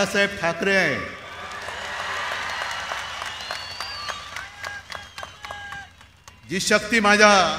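A huge crowd cheers and roars.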